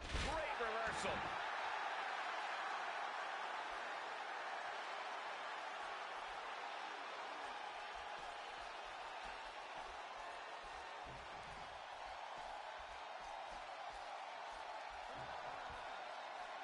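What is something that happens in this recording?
A large crowd roars and cheers steadily in a big arena.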